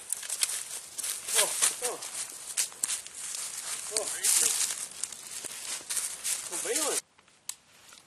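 Dry stalks crunch underfoot as people walk outdoors.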